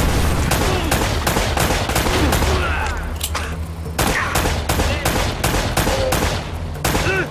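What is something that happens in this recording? Pistol shots fire in rapid succession.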